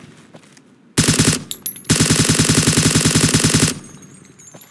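A rifle fires a fast burst of loud shots.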